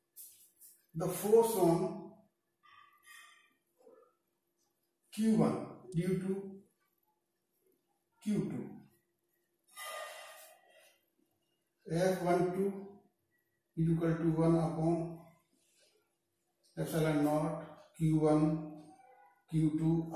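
An elderly man speaks calmly in pauses, close by.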